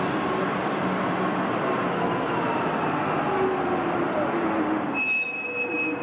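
A bus engine whines as a bus pulls away.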